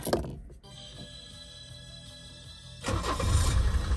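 A key turns in the ignition.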